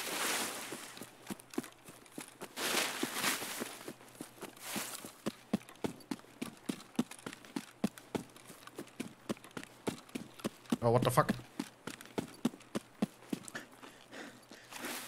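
Footsteps crunch steadily over grass and dirt.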